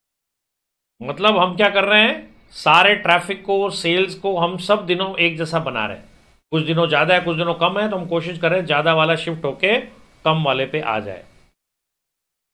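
A middle-aged man lectures with animation into a close microphone.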